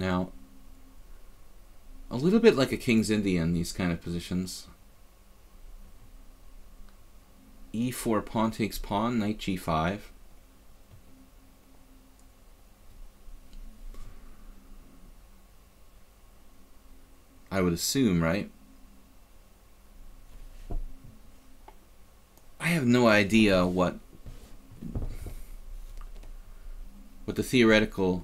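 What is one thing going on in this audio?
A middle-aged man talks with animation, in short bursts, close to a microphone.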